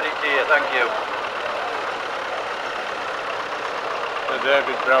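A tractor engine chugs steadily as it drives past.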